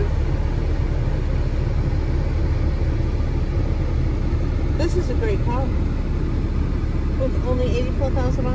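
A car engine idles with a low, steady rumble heard from inside the car.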